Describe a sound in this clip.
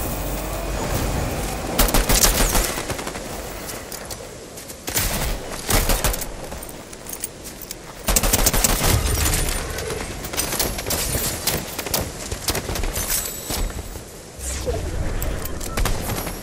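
Footsteps run across the ground.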